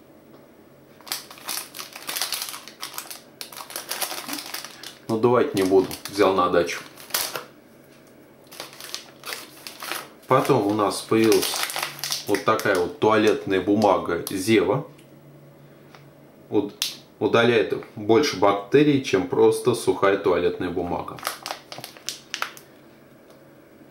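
Plastic packaging crinkles and rustles as hands handle it.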